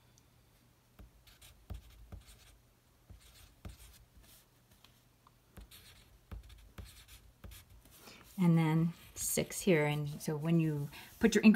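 A pencil taps and scratches on paper.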